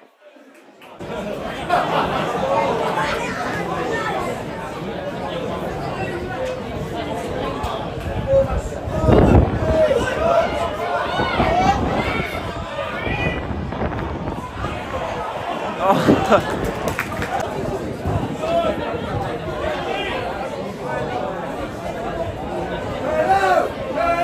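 A crowd of spectators murmurs and calls out outdoors.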